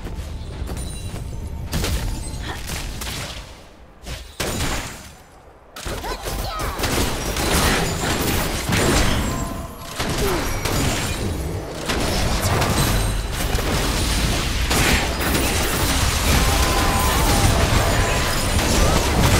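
Game spell effects whoosh and crackle in a battle.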